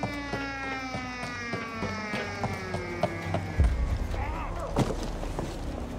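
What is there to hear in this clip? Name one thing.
Boots clank on metal ladder rungs as someone climbs.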